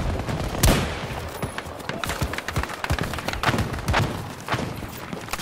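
Gunshots crack in quick, uneven bursts.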